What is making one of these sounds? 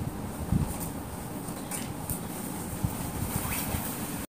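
Fabric rustles as a garment is shaken out.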